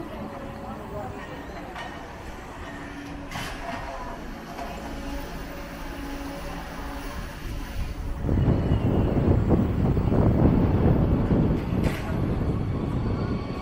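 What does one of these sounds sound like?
An excavator engine rumbles nearby.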